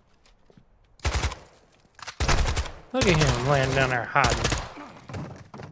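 A rifle fires short, loud bursts.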